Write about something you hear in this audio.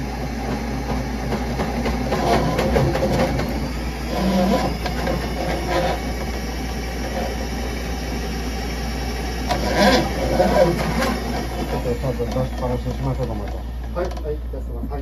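A drain cleaning cable spins and rattles as it scrapes inside a pipe.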